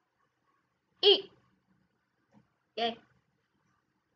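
A young girl speaks a few short words close to a microphone.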